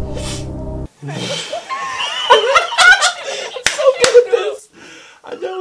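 A man laughs loudly and wheezes.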